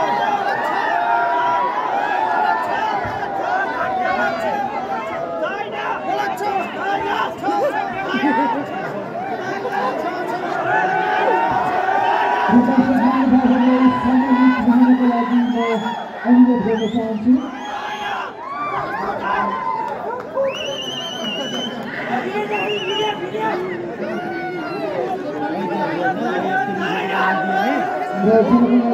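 A large outdoor crowd chatters and cheers loudly.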